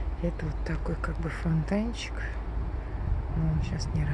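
Ducklings peep softly on a pond.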